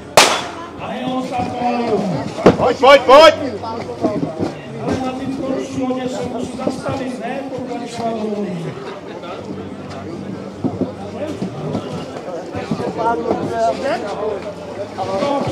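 Men and women talk and call out to each other outdoors.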